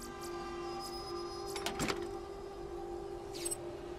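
A metal chest creaks open.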